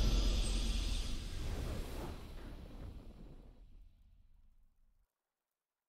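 A triumphant victory fanfare rings out and slowly fades away.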